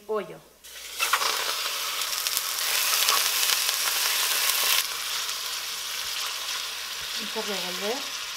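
Meat sizzles loudly as it drops into a hot pot.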